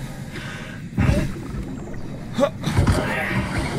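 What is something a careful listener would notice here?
Water swirls and sloshes around a swimmer's arms underwater.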